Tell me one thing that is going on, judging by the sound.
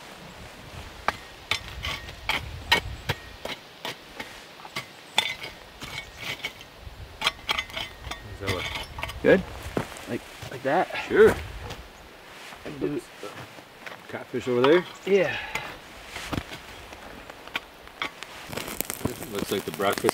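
A metal shovel scrapes and clinks against stones and ashes.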